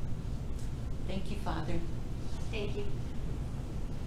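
A woman reads aloud briefly.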